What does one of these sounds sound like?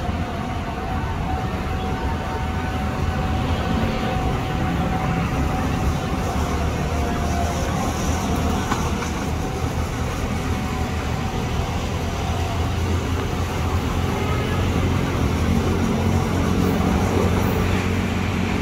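An electric train approaches, rumbling louder along the rails.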